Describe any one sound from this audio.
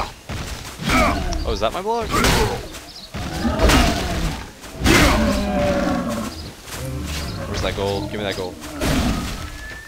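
A large monster roars and growls.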